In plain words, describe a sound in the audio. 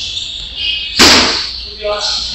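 A kick thuds sharply against a padded shield.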